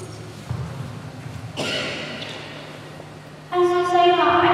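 A man reads aloud calmly in an echoing hall.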